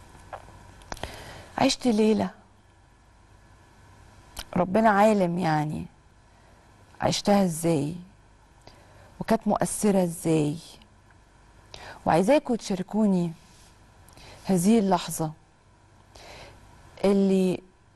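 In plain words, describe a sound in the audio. A woman speaks calmly into a microphone in short phrases with pauses.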